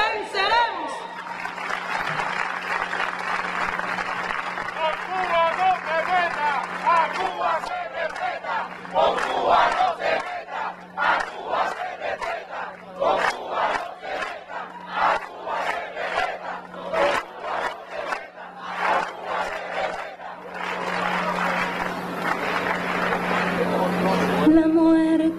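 A large crowd cheers and chants outdoors.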